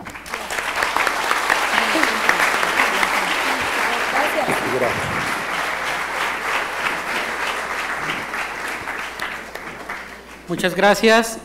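A crowd murmurs and chatters in a large room.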